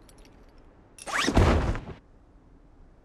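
A parachute opens with a loud whoosh.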